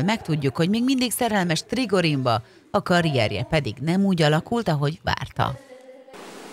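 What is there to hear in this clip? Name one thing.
A woman cries out loudly in a wailing voice.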